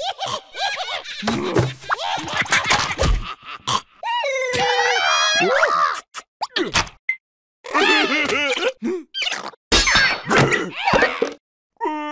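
Cartoon creatures babble and squeal in high, squeaky voices.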